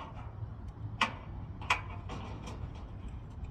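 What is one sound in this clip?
Metal clanks sharply now and then.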